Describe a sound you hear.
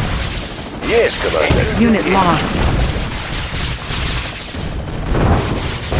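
Missiles whoosh and launch in rapid bursts.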